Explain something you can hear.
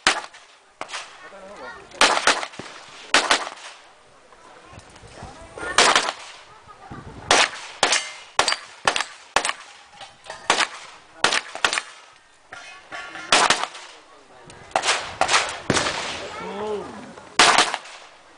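Pistol shots crack one after another outdoors, echoing off the range.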